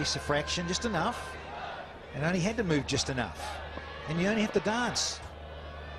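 A crowd cheers and claps loudly.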